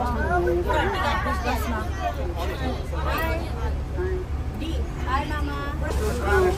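Women chatter nearby with animation.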